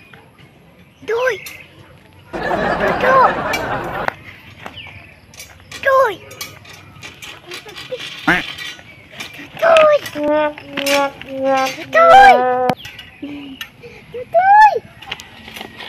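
A young girl talks excitedly close by.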